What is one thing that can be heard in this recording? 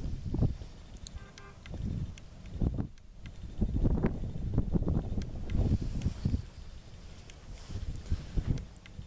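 Wind blows in strong gusts outdoors.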